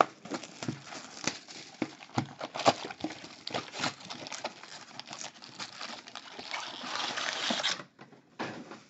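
Plastic wrap crinkles and rustles as it is torn off a box.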